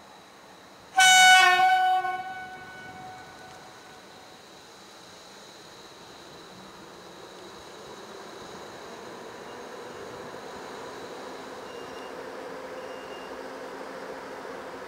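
A level crossing bell rings out.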